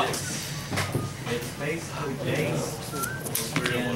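Playing cards flick and rustle as they are shuffled by hand.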